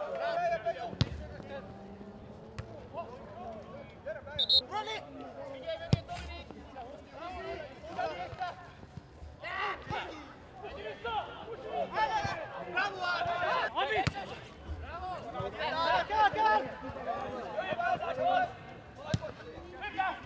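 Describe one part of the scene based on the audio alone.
A football is kicked on a grass pitch.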